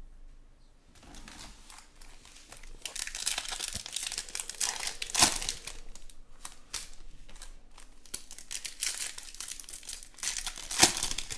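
Foil card packs crinkle and rustle as hands tear them open.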